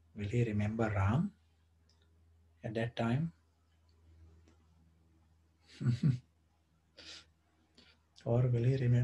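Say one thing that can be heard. An older man speaks calmly in short phrases close to a microphone.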